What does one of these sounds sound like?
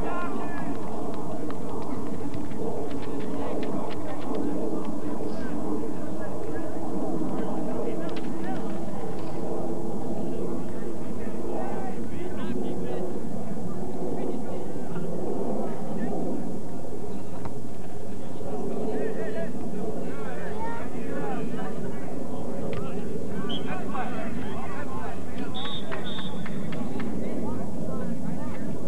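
A crowd of people chatters and murmurs outdoors at a distance.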